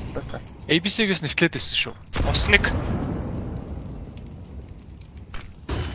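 Fire crackles and roars nearby.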